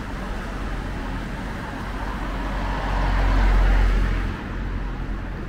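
A car drives past close by on a wet road, its tyres hissing.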